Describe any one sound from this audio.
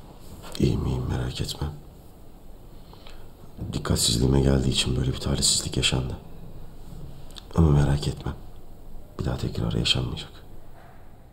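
A young man speaks softly and wearily, close by.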